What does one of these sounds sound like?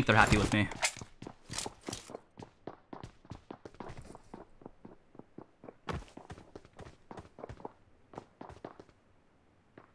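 Quick footsteps patter on a tiled roof.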